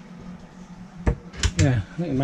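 A cupboard latch clicks open.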